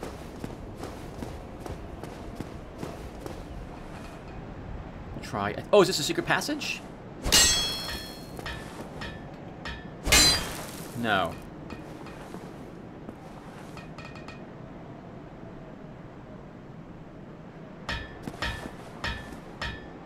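Armored footsteps clank on stone.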